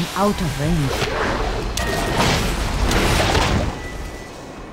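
Magic spells whoosh and crackle in loud bursts.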